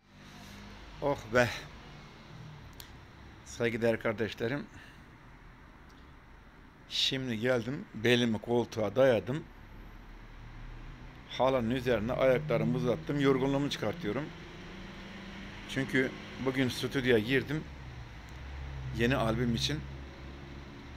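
An elderly man speaks calmly and close up, with pauses, as if into a phone.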